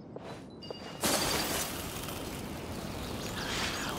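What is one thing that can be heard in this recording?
A magical shimmering whoosh rushes loudly.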